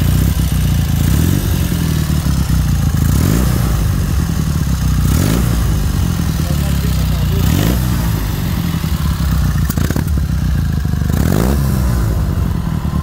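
A motorcycle engine revs up sharply several times and drops back.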